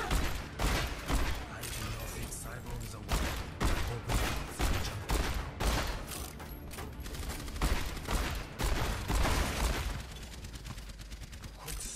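A pistol fires repeated loud gunshots.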